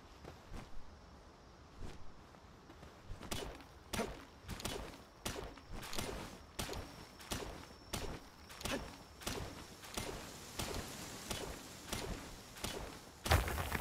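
A pickaxe strikes rock with repeated sharp knocks.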